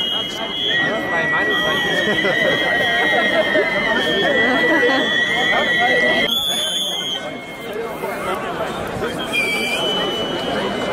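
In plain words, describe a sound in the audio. A large crowd of men and women talks and murmurs all around, outdoors.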